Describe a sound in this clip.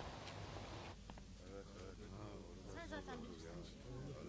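A woman speaks indoors.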